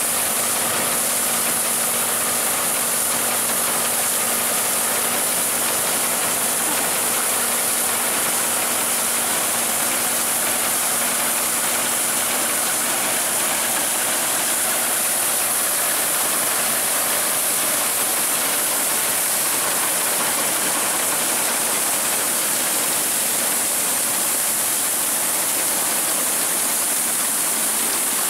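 A tractor engine runs steadily close by.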